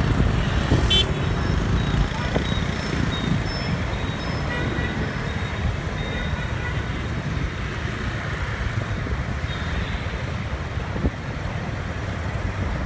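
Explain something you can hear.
Motor scooters ride along in traffic.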